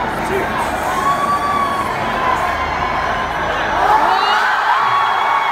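Fans whistle shrilly in the crowd.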